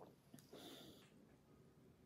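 A spoon clinks against a glass while stirring.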